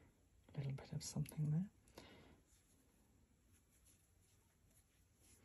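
Fingers softly rub and roll a tuft of wool.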